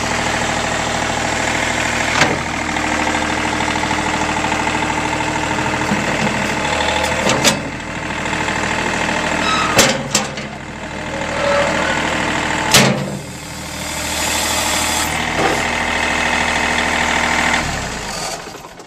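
A tractor engine idles steadily close by.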